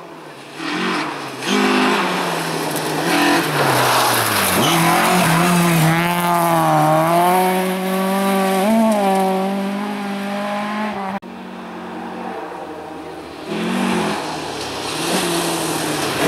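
A rally car engine revs hard and roars past, rising and falling in pitch.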